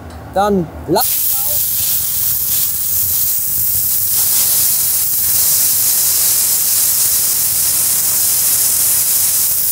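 An electric welding arc hisses and crackles steadily.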